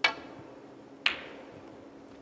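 A snooker ball knocks against another ball.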